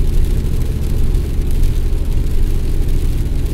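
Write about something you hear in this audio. Wet snow taps lightly against a windscreen.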